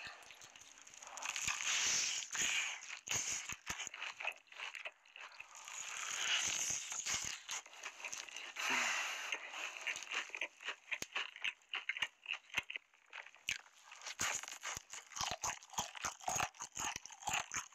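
Crispy fried chicken crunches and tears apart close up.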